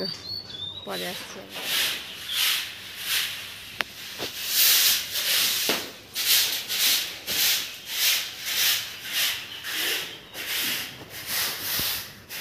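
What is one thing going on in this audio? A broom sweeps a floor in rhythmic swishes.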